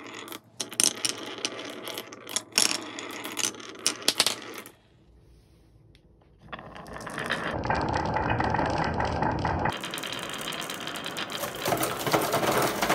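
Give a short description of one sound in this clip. Glass marbles roll and rumble along a wooden track.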